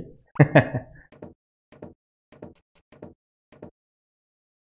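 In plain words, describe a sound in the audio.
Footsteps tap on wooden boards.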